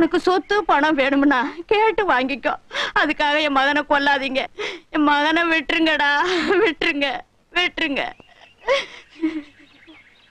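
An elderly woman speaks pleadingly and with emotion, close by.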